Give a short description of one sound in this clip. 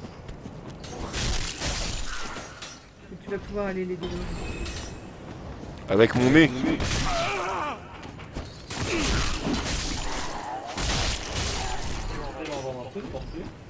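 Swords clash and swing in a game fight.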